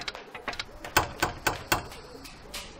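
A hand knocks on a door.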